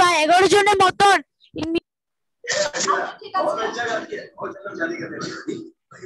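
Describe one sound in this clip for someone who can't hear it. A young girl speaks through an online call.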